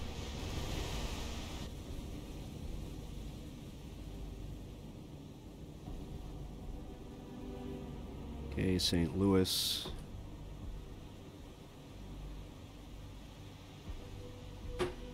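Waves roll and rumble on the open sea.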